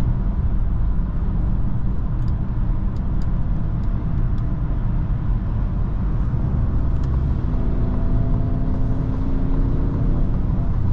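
A car's engine hums steadily at highway speed.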